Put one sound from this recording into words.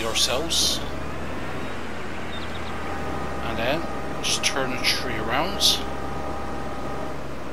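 A heavy diesel engine rumbles steadily.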